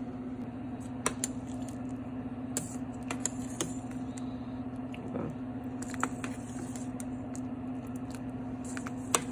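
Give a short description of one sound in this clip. A metal ladle stirs thick soup and clinks against a metal pot.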